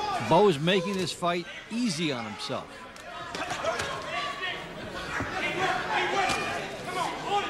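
Boxing gloves thud against a boxer's body.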